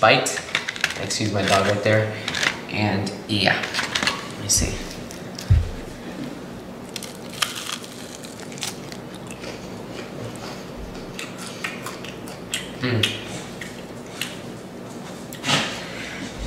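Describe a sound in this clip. Crispy fried chicken crackles as a hand picks it up.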